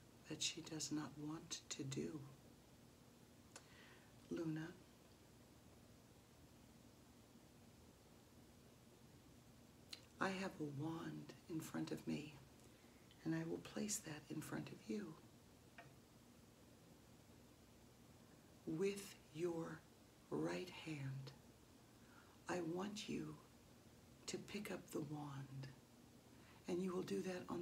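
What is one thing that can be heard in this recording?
A middle-aged woman speaks with animation close by, pausing now and then.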